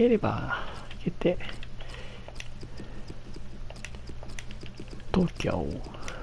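Soft menu clicks tick quickly as letters are picked one by one.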